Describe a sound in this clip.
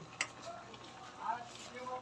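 A metal spoon clinks against a steel pot.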